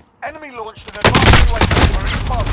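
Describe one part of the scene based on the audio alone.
Gunshots crack in rapid bursts close by.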